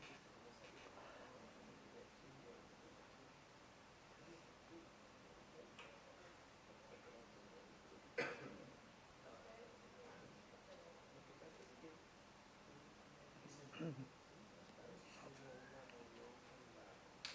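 A woman speaks calmly into a microphone, heard over a loudspeaker in a room.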